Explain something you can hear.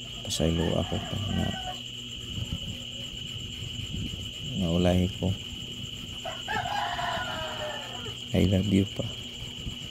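An elderly man moans weakly close by.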